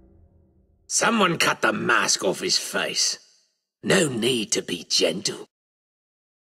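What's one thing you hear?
An elderly man speaks loudly and menacingly, close up.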